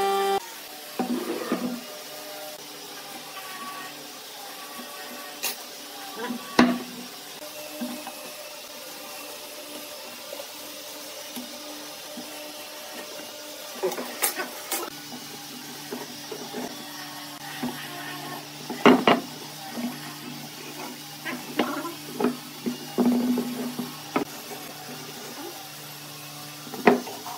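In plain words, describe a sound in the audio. Wooden beams knock against a wooden workbench.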